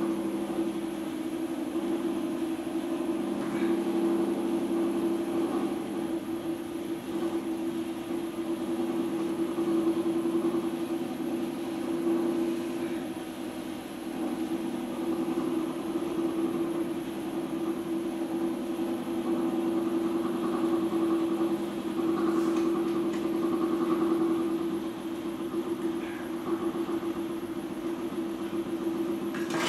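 A potter's wheel hums steadily as it spins.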